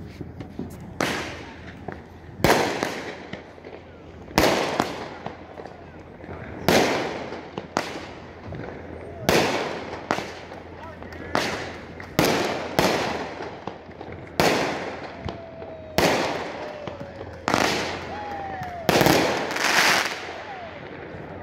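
Fireworks burst with loud booming cracks, one after another.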